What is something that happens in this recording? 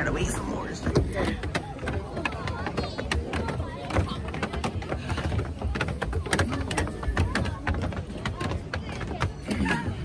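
Footsteps climb stairs.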